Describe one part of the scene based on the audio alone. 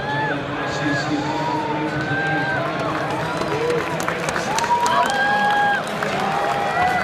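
A large crowd cheers and calls out in a big open stadium.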